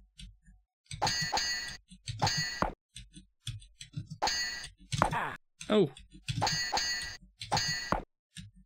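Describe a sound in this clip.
Swords clash in a game fight.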